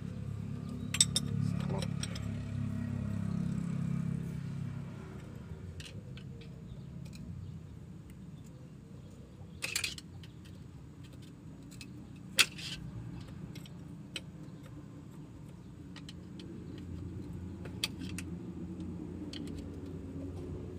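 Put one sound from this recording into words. A combination wrench clinks against the metal fittings of a diesel injection pump.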